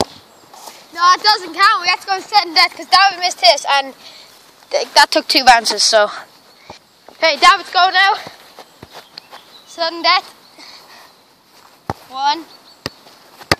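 A boy talks with animation, close by, outdoors.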